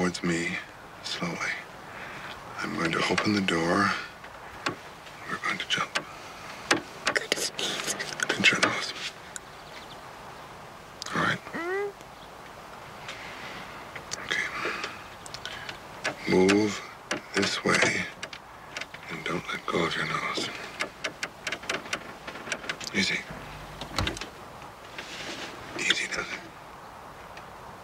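A man speaks softly and closely.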